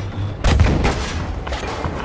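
A shell explodes in the distance.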